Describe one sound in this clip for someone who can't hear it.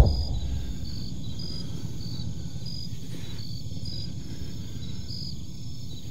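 A coaxial-rotor attack helicopter thumps and roars, flying overhead.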